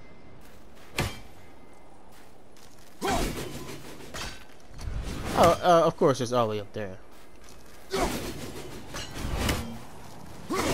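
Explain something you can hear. An axe bites into ice with sharp thuds.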